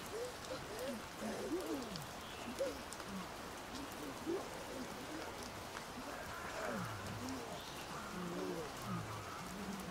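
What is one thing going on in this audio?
A young man talks softly nearby.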